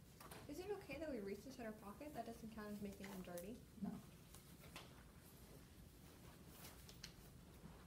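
Rubber gloves snap and rustle as they are pulled on.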